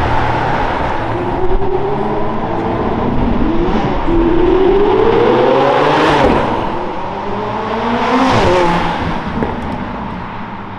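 A sports car engine revs loudly and roars past.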